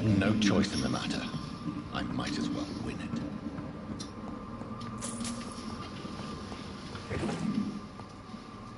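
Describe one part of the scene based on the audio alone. A young woman talks through a microphone.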